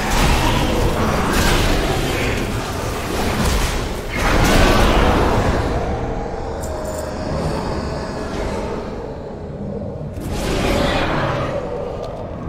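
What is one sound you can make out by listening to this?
Spell effects and combat sounds from a game crackle and whoosh.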